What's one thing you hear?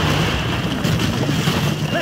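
An explosion booms nearby and debris rains down.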